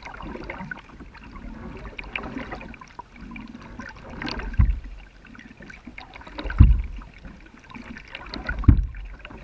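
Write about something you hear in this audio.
Water ripples and laps against the hull of a kayak gliding along a calm river.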